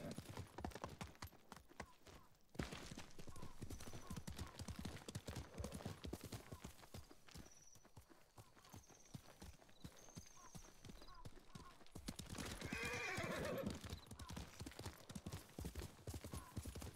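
Horse hooves clop steadily on the ground at a gallop.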